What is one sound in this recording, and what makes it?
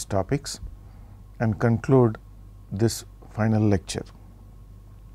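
A middle-aged man speaks calmly into a close microphone, in short phrases.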